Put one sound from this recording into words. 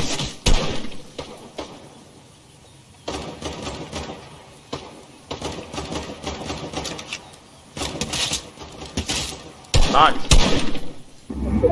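Rifle shots crack in short bursts.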